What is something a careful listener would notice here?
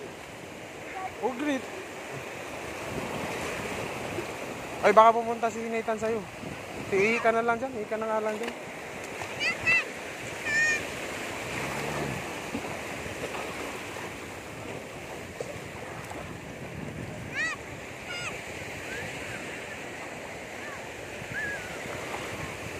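Shallow waves wash and foam steadily close by.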